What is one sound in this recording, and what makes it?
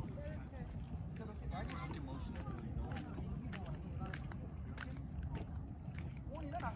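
A small crowd of adults chats outdoors.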